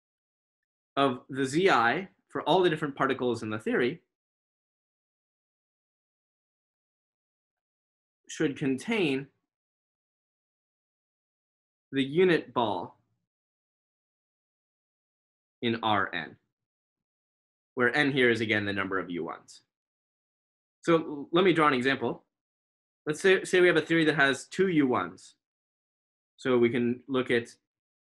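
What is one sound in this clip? A man speaks calmly in short phrases over an online call, with pauses between them.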